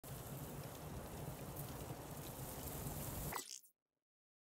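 Wind blows steadily outdoors, then cuts off abruptly.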